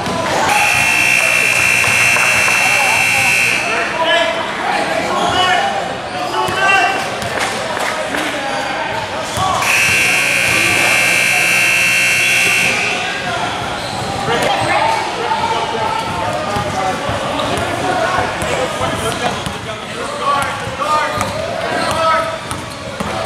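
Young boys call out to each other in an echoing gym.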